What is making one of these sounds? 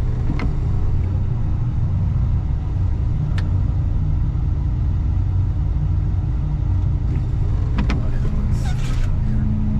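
A snow plow blade scrapes over packed snow.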